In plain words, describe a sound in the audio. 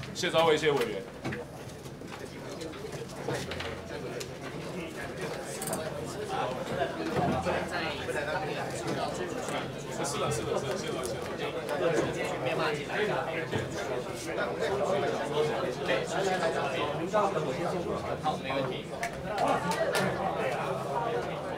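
A crowd of men and women chatters in a large room.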